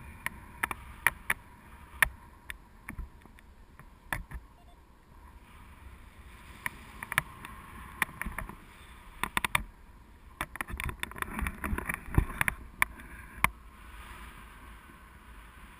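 Wind rushes and buffets loudly past in open air.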